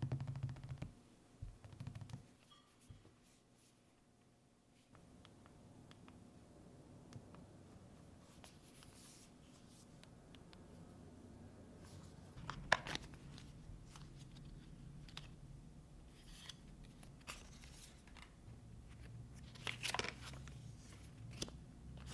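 Small objects click and tap on a table.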